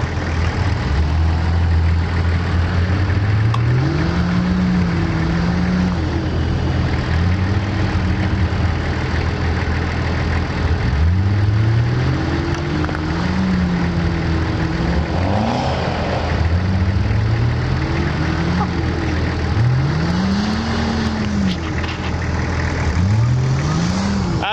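An engine revs hard, rising and falling in pitch.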